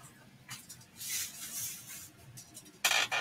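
Foam scraps rustle as hands brush them across a table.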